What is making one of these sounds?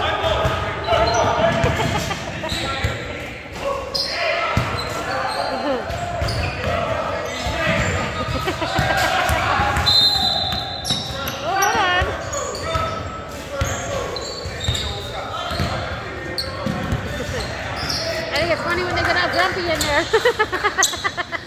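Men call out and talk loudly across an echoing gym.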